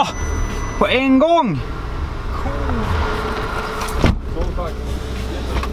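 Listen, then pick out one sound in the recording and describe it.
A man speaks loudly nearby, outside a car.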